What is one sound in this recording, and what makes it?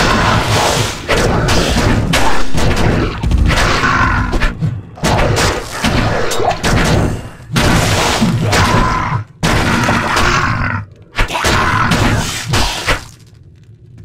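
Magic spells crackle and burst over and over in a fight.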